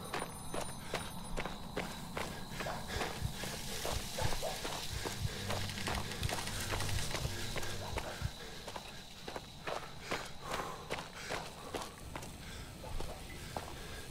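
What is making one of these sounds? Footsteps crunch over loose rubble and debris.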